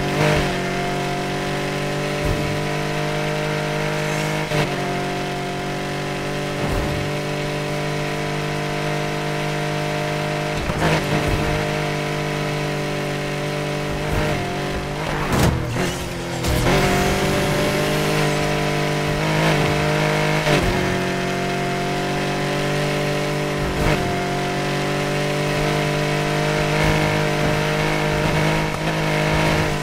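A flat-six racing sports car engine roars at full throttle, shifting through gears.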